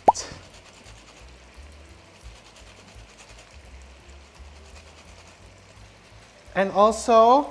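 A lemon is grated, with soft rhythmic scraping.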